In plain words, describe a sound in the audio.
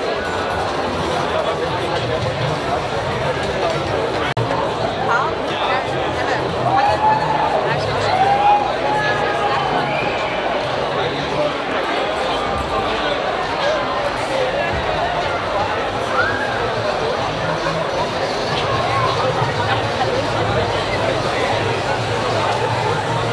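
Loud dance music thumps from a loudspeaker truck.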